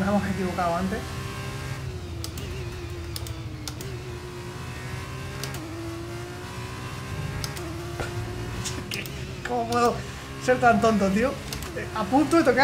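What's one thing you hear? A racing car engine drones and shifts pitch as it accelerates and brakes.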